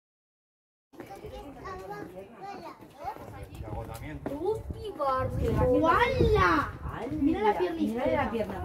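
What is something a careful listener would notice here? A woman chats with animation nearby.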